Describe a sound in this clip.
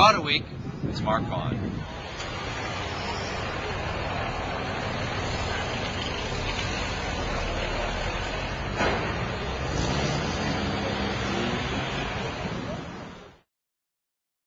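Street noise rumbles steadily outdoors.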